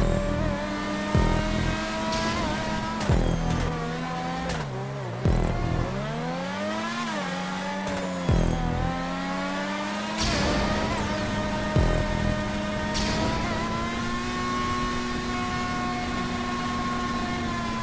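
A racing car engine whines at high revs, dropping and rising in pitch as gears shift.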